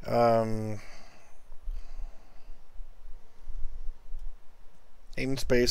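A man speaks calmly and close to a microphone, with pauses.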